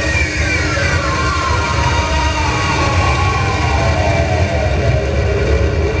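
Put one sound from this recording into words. Electronic tones glide downward at the start of the electronic music.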